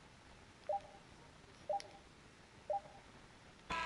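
Beeps count down the last seconds on a game clock.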